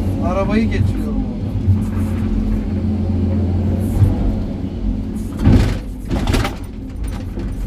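Rocks and earth clatter and crash down as they are dumped.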